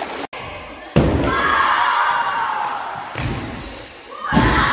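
A skateboard clatters as it lands.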